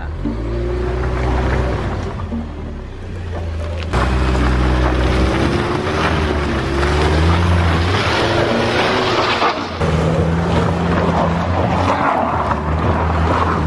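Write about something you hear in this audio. Car tyres squelch and crunch over wet mud.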